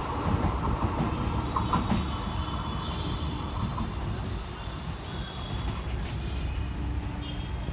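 A train rumbles steadily along the tracks, drawing closer.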